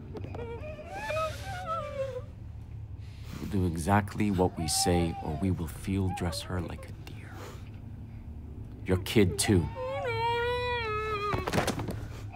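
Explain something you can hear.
A young woman whimpers and sobs in fear.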